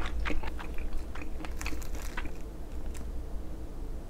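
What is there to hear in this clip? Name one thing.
Chopsticks click against a plate.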